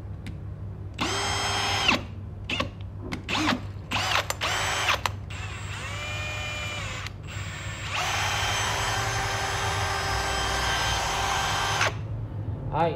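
A cordless drill motor whirs in several bursts, some short and one long and steady.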